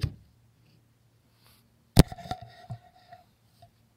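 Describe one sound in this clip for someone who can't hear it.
A hatch cover clunks open.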